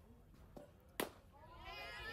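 A softball smacks into a catcher's mitt with a sharp pop.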